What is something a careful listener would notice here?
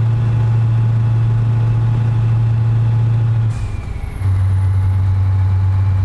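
A truck engine drones steadily, dropping briefly during a gear change before settling at a lower hum.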